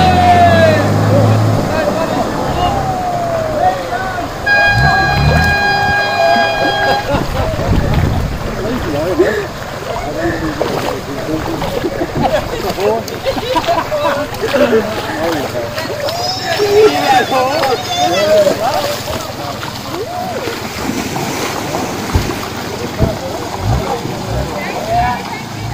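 Water splashes and rushes around a truck's wheels.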